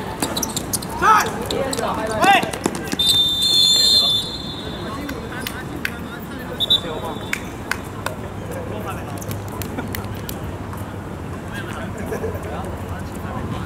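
Young men shout to each other outdoors.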